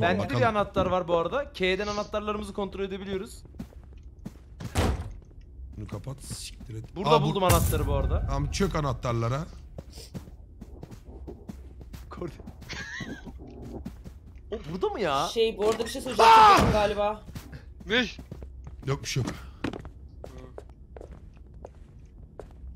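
Young men talk and exclaim with animation over microphones.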